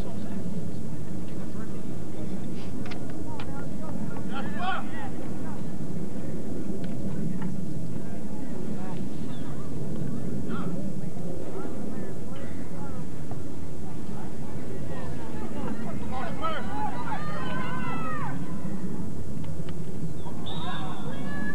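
Young men call out across an open field.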